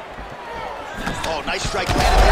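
A punch lands with a smack.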